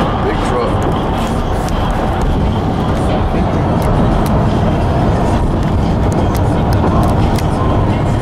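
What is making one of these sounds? Raindrops tap on a car window.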